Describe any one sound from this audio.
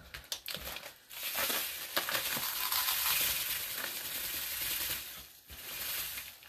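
Powder pours and rustles from a paper bag.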